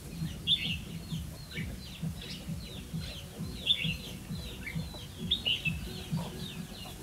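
A small bird chirps and twitters in the trees, in quick bursts.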